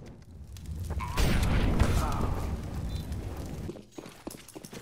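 Flames roar and crackle from a burning fire.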